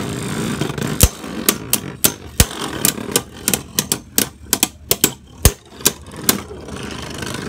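Spinning tops clack sharply against each other.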